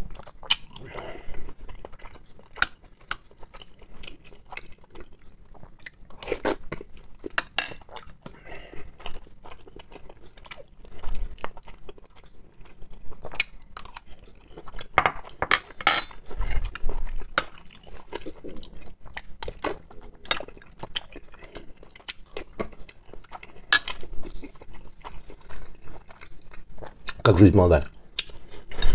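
A man chews food wetly and noisily close by.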